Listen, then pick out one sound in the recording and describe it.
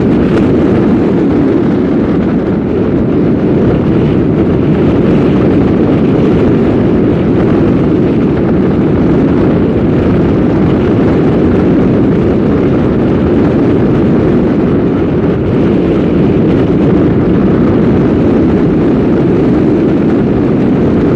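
Tyres rumble steadily on the road.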